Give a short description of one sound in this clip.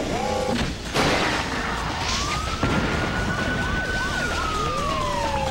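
A rocket fires with a loud, rushing roar and a rising whine.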